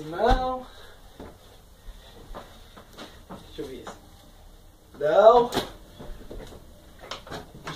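Caps knock softly against a wooden wall as they are hung up.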